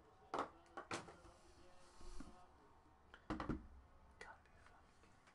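Cardboard boxes knock and clatter on a table.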